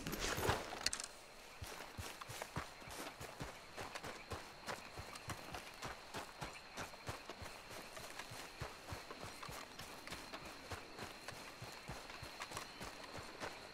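Footsteps pad softly through grass.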